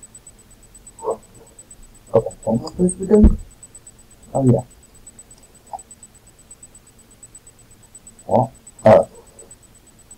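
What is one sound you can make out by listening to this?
A young man speaks in short bursts close to a microphone.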